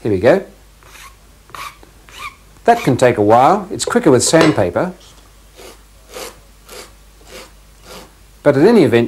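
A cork rubs back and forth on sandpaper in steady strokes.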